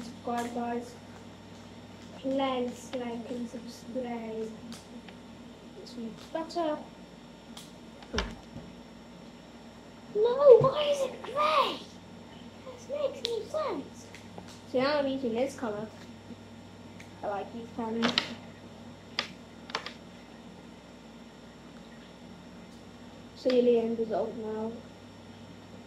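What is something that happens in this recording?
A young boy talks calmly close by.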